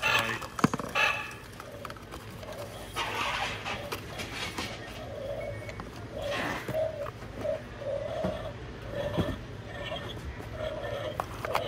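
Plastic packaging rustles and crinkles as hands handle it.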